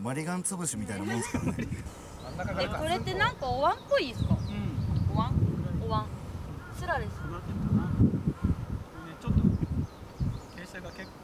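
A young woman talks calmly and cheerfully nearby.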